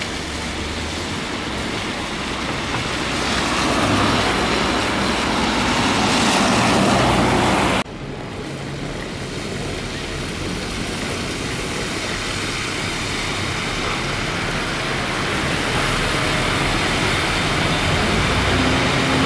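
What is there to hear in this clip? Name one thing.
Tyres hiss on a wet road as buses pull away.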